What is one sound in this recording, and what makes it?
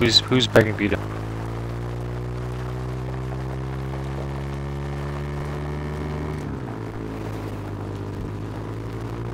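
A small off-road vehicle's engine hums steadily.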